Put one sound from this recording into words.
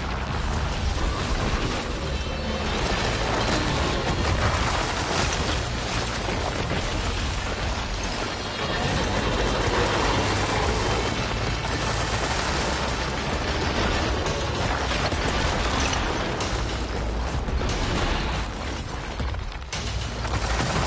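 Explosions and crashes of a video game battle rumble loudly.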